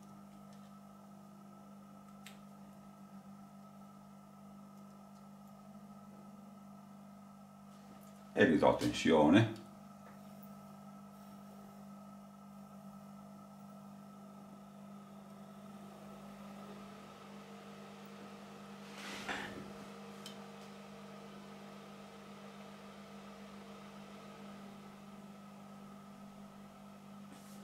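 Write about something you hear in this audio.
An electrical transformer hums steadily.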